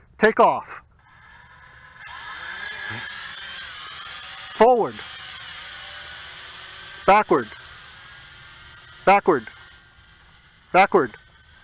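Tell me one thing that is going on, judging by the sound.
A drone's propellers whir as it lifts off and flies away, slowly fading.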